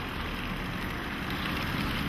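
Water splashes steadily from a fountain.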